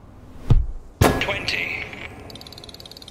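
A bright electronic whoosh bursts out and fades.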